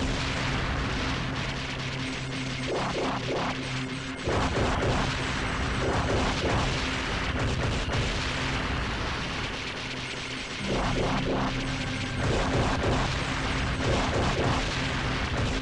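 Rapid gunfire rattles and booms in a video game.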